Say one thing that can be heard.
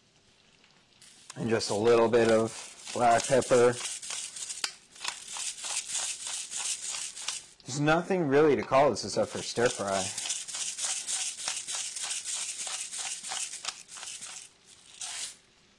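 A pepper mill grinds with a rapid dry crackle.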